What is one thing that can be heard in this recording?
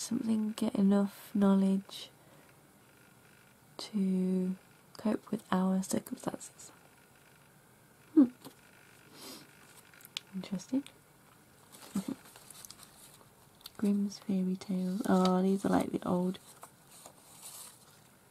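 Paper tickets rustle and crinkle as fingers handle them.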